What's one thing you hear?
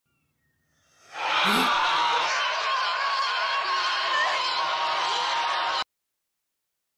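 A man lets out a long, piercing scream.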